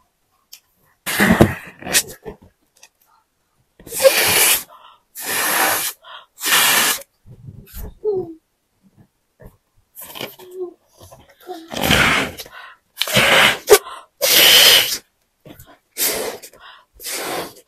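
A woman blows hard into a balloon in short, noisy bursts.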